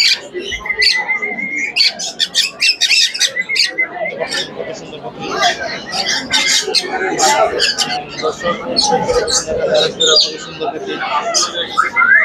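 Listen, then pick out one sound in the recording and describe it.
Parrots squawk and chirp shrilly, close by.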